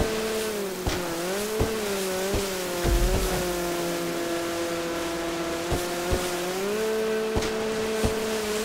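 A jet ski engine whines at full throttle, its pitch dipping and rising.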